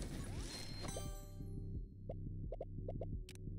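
A bright chiming tone rings out as the action stops.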